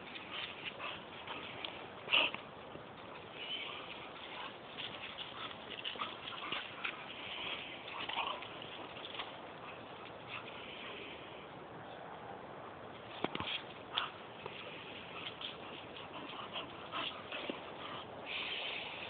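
Dog paws scuffle on dry grass.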